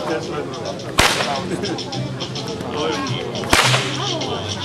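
A whip cracks sharply twice.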